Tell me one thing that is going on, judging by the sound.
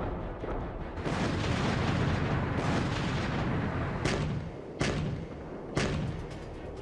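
Loud explosions boom and crackle.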